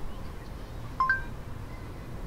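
A phone gives a short electronic chime.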